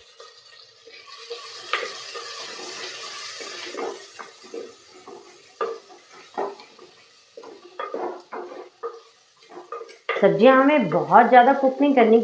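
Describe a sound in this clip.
A wooden spoon scrapes and stirs vegetables in a clay pot.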